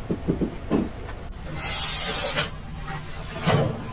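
A rug rustles as it is dragged across a tiled floor.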